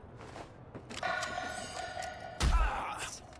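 A punch thuds in a brawl.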